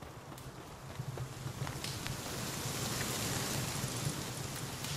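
A campfire crackles and roars.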